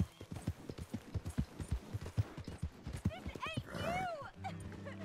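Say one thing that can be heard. Horse hooves thud rapidly on the ground.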